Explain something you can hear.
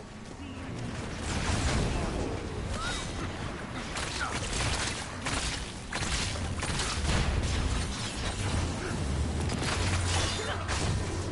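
Energy blasts crackle and boom in quick bursts.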